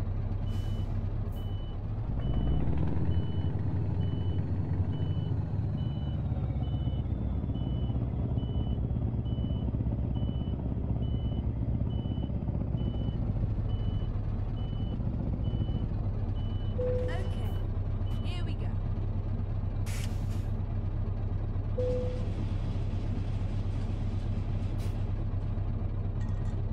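A truck engine rumbles steadily, revving up briefly near the start.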